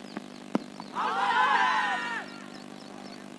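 Men shout outdoors across an open field.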